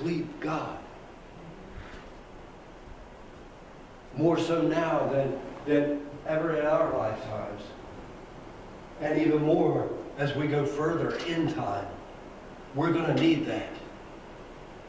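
An elderly man speaks calmly in a room with a slight echo.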